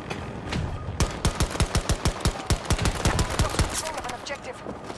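A pistol fires a rapid string of sharp shots.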